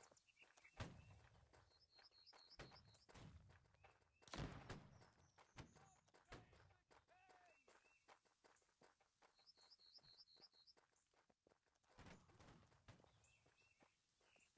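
Footsteps splash quickly through shallow water.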